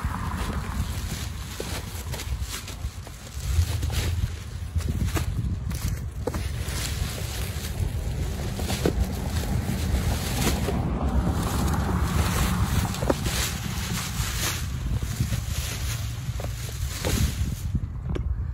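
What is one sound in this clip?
Plastic sheeting crinkles and rustles.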